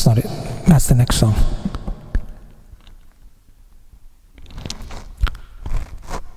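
A man sings close into a microphone.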